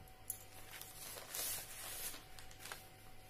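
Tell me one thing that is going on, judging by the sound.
Newspaper rustles and crinkles.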